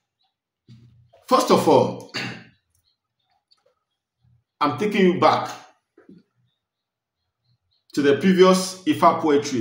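A man speaks calmly and close up, in short bursts with pauses.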